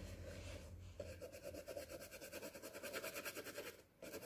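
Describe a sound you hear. A paintbrush brushes on canvas.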